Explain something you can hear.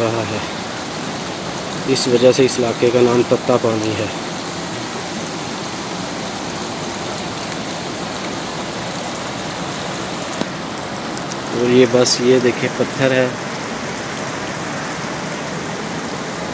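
Water trickles and babbles steadily over rocks.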